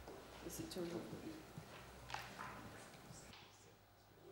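A man speaks faintly from a distance in a large room.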